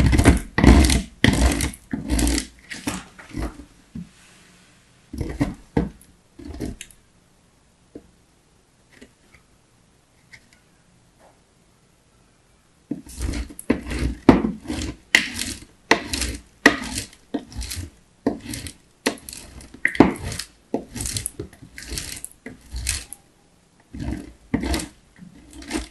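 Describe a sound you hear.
Soft chalk scrapes in quick strokes across a metal grater.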